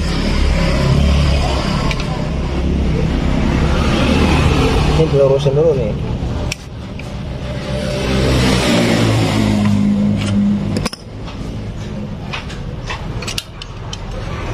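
A metal wrench clicks and scrapes against engine parts.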